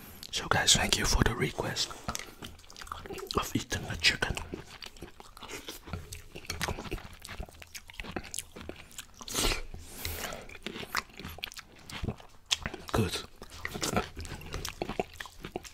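A spoon scrapes and clinks against a plate close to a microphone.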